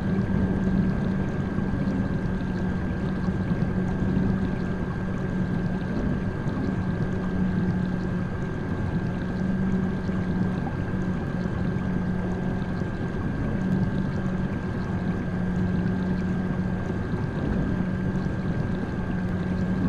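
A small submarine's motor hums steadily underwater.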